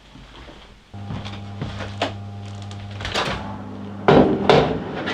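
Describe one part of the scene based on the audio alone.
A microwave oven hums steadily.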